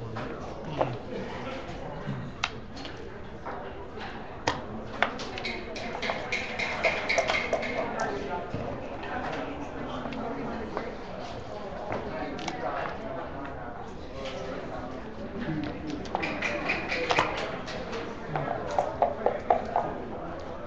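Backgammon checkers click as they are moved across a board.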